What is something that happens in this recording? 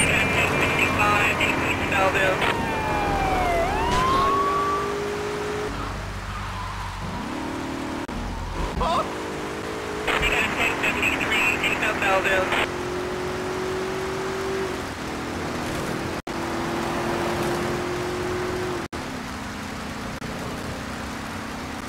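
A police car's engine revs as the car accelerates.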